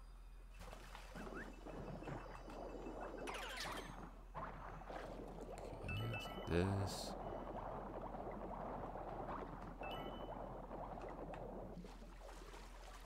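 Water swishes and churns as a small figure swims through it.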